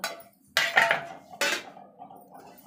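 Metal lids and bowls clink and clatter.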